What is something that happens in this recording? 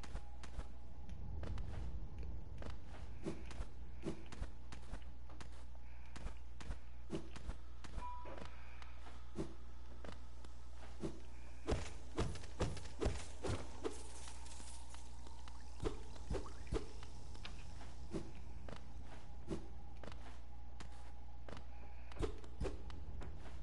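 Light footsteps tap quickly and steadily.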